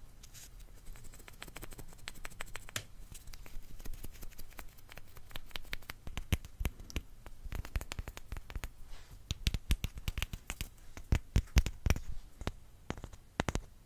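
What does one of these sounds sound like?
A crunchy snack crackles and snaps up close.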